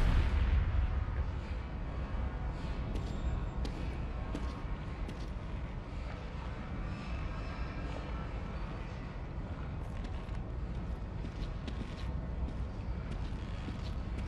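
Footsteps tread slowly on a stone floor.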